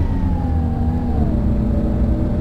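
A bus engine whine drops in pitch as it changes gear.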